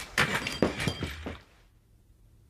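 A chair creaks as a man sits down.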